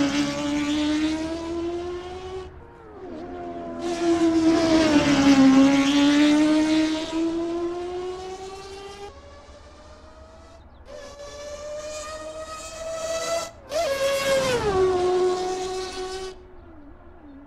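A racing car's engine screams at high revs, rising and falling in pitch.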